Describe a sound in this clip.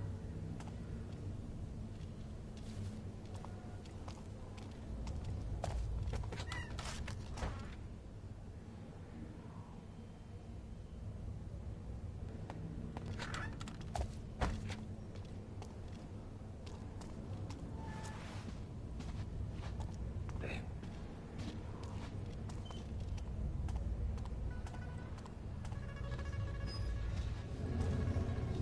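Soft footsteps pad across a stone floor.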